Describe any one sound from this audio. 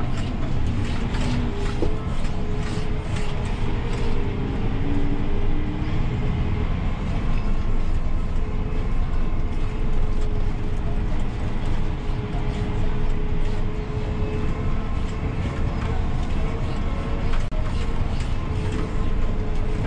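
A tractor rolls and rattles over a bumpy field.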